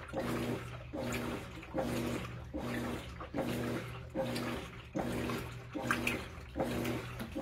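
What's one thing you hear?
A washing machine agitator churns back and forth with a rhythmic whirring hum.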